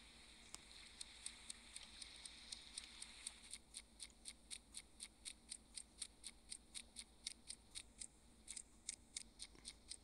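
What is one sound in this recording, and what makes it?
Small footsteps patter quickly and steadily.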